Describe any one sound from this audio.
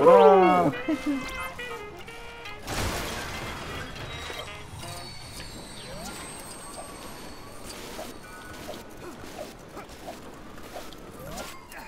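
Water splashes as a figure skims across it.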